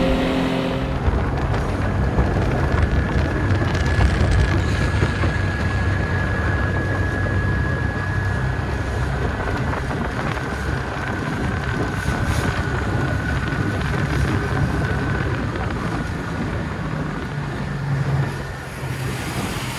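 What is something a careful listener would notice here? A four-stroke outboard motor hums at cruising speed close by.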